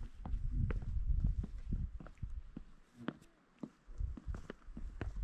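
Wind buffets outdoors in gusts.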